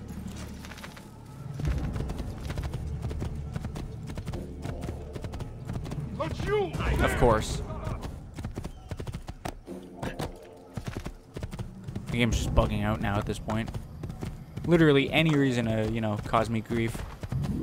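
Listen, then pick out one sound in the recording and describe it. A horse gallops with quick, pounding hoofbeats on a dirt track.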